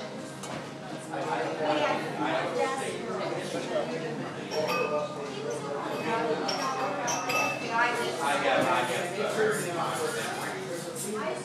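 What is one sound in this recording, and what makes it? Several adults talk and laugh loudly close by.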